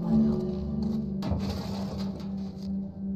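A metal drawer rattles open.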